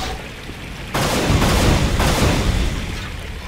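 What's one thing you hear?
A shotgun fires with a loud, booming blast.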